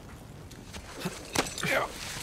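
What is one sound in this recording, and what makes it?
Hands and boots scrape on rock during a climb.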